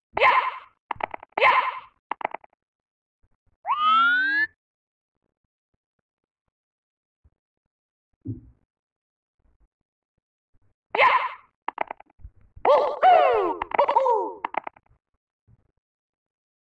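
Short, bright electronic game sound effects chirp and boing now and then.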